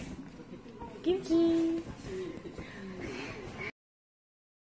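A young boy speaks in a high, playful voice close by.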